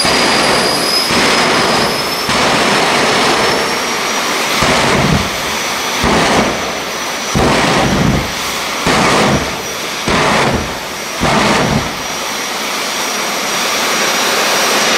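Tyres spin and screech on the track.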